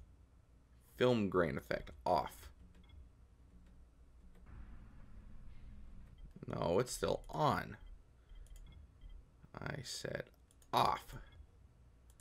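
A man speaks calmly and close by, with short pauses.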